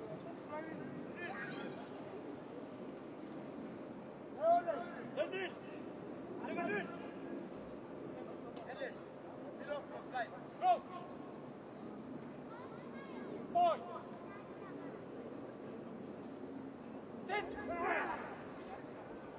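Men shout calls to each other outdoors.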